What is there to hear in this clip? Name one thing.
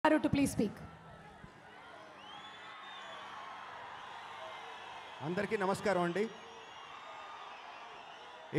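A crowd cheers and screams in the background.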